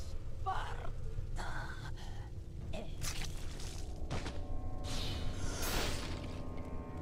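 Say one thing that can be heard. A blade slashes into flesh with a wet, heavy strike.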